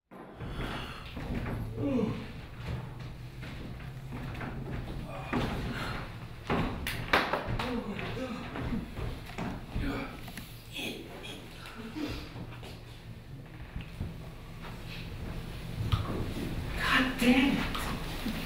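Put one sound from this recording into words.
An elderly man speaks in a theatrical voice, heard from a distance in a hall.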